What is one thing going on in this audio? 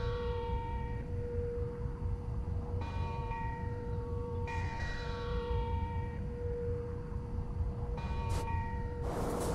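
A ship's horn sounds in long, steady blasts across the water.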